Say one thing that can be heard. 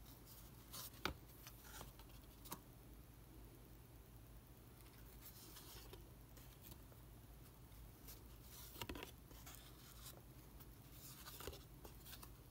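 Cards tap and flick softly as they are handled.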